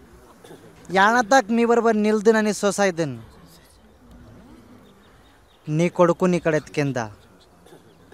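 A man speaks loudly and with feeling, close by.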